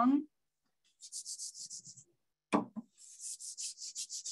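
A hand rubs quickly back and forth across a wooden surface.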